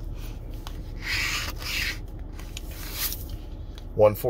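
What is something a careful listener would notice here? A coin scratches across a lottery ticket.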